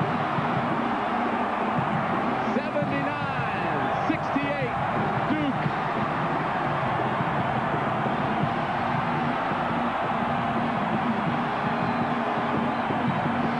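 A large crowd cheers and roars loudly in an echoing arena.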